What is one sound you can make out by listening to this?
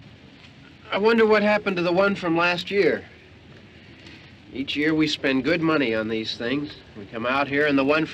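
A middle-aged man talks nearby in a calm voice.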